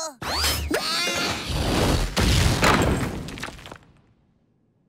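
A loud crash rumbles and fades.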